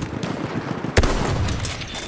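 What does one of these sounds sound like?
A bolt-action rifle fires a single loud shot.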